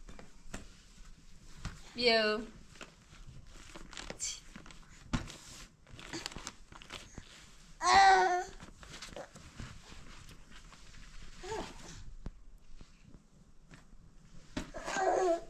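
A small child handles a plastic backpack, rustling and tapping it.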